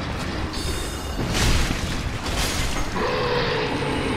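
A sword clangs and slashes.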